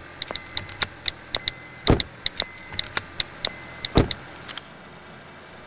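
Fingers tap quickly on a phone's touchscreen keyboard, clicking.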